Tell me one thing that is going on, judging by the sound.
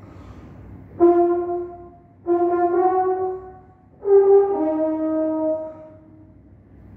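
A French horn plays a few loud, sustained notes in a room with light echo.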